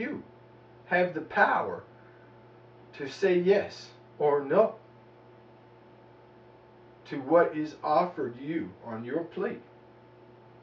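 A man speaks calmly in short phrases close by.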